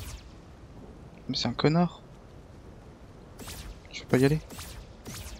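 Electricity crackles and zaps.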